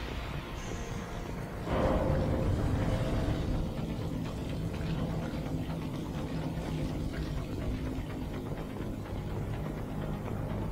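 Heavy boots step on a metal floor.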